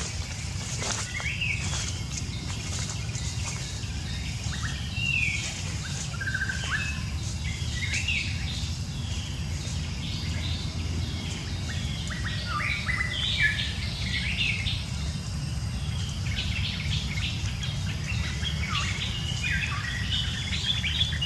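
Young monkeys squeal and chirp in high, short cries.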